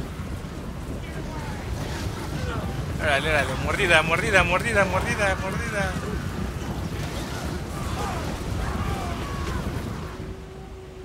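A crowd of men yells and cries out in battle.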